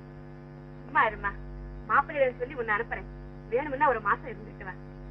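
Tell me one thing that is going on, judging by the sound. A woman speaks softly and tenderly.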